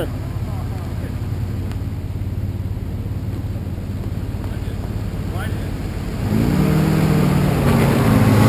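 A small electric motor whirs steadily as a toy off-road truck crawls closer.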